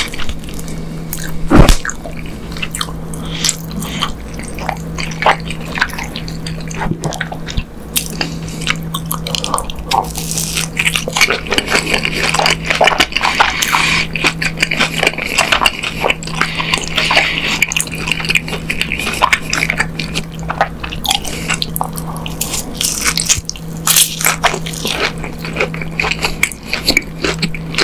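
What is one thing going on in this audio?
A man chews crunchy fried food close to a microphone.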